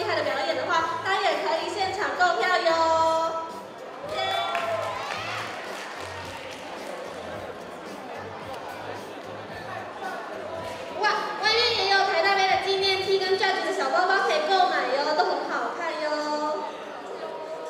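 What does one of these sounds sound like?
A young woman talks with emotion into a microphone, heard through loudspeakers in a large hall.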